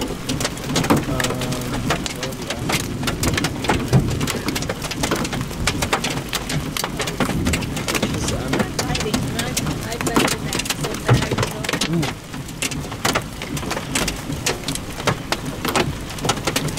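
Strong wind gusts and roars outdoors.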